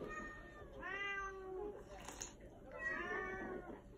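A man slurps soup noisily.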